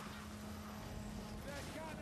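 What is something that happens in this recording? A gun fires in sharp bangs.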